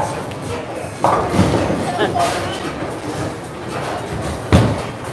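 A bowling ball thuds onto a lane and rolls with a low rumble.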